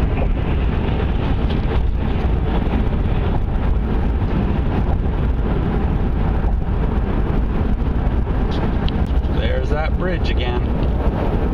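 Wind rumbles against a moving car.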